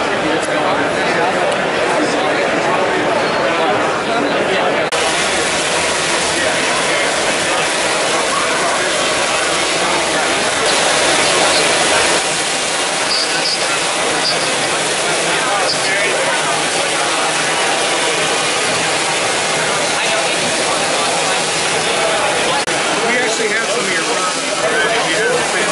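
A crowd chatters all around in a large busy hall.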